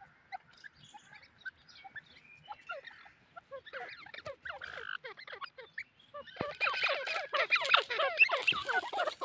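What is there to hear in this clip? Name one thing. A partridge calls with rapid chirps and chatter that grow louder toward the end.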